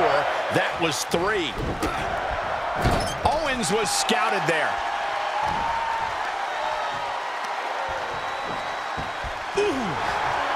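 Blows land with heavy thuds.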